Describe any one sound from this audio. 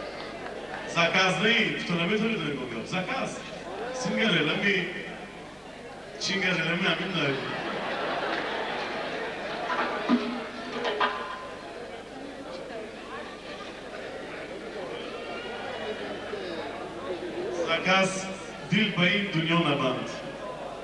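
A man speaks with animation through a microphone on a loudspeaker.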